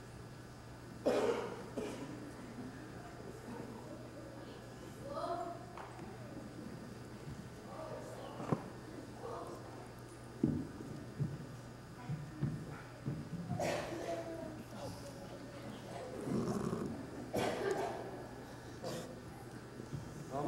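Young children talk and murmur softly in a large echoing hall.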